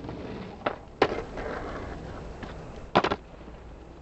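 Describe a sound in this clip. A skateboard clacks and grinds along a ramp's edge.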